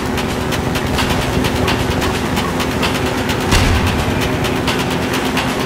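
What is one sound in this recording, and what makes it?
Tyres rattle and bump over rough ground.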